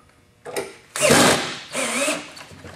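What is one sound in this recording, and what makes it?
A cordless drill whirs briefly as it drives a screw.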